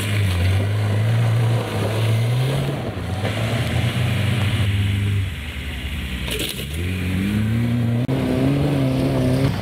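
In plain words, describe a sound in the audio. Tyres spin and crunch on loose gravel and dirt.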